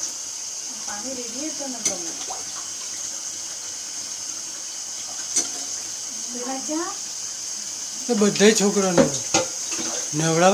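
Water pours and splashes gently.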